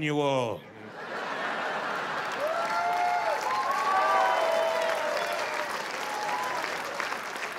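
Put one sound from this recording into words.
An audience laughs and applauds in a large hall.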